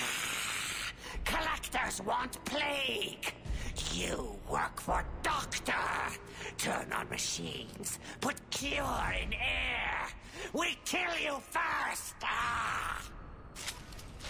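A creature speaks in a deep, growling, distorted voice.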